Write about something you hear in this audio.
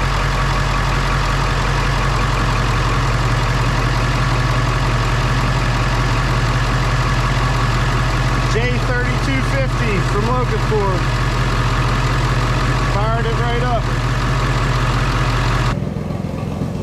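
An engine idles with a steady low hum.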